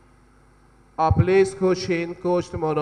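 A man sings loudly into a microphone, heard through a loudspeaker in a reverberant hall.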